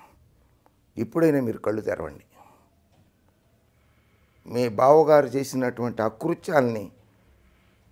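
An elderly man speaks calmly and clearly, close by.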